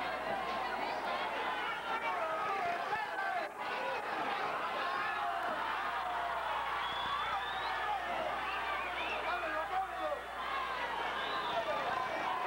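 A crowd murmurs and shouts in a large hall.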